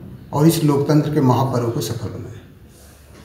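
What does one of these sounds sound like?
A middle-aged man speaks calmly, close to the microphone.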